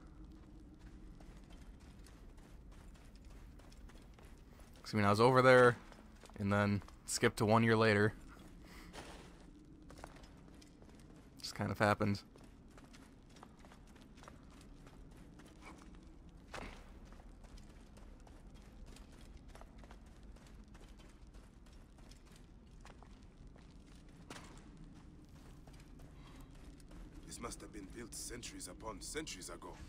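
Footsteps pad softly on sand and stone.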